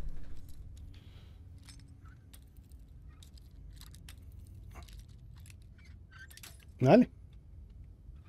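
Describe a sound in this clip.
Metal lock picks scrape and click softly in a lock.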